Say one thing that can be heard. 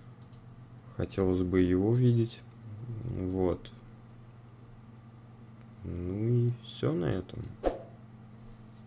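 A young man speaks calmly and close up in short bursts.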